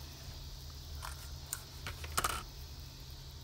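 Paper and ribbon rustle softly as they are handled.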